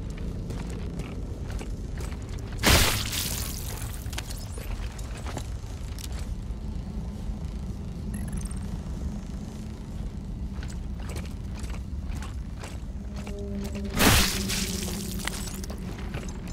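Heavy footsteps crunch on rough ground.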